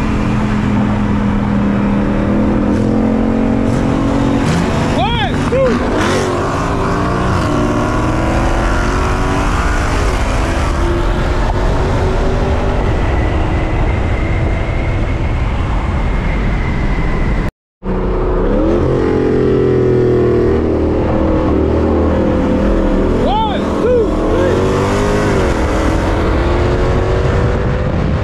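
A car engine roars loudly as the car speeds up.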